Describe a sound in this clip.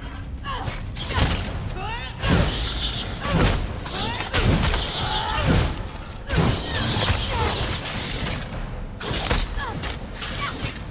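An axe strikes a giant scorpion with heavy, repeated thuds.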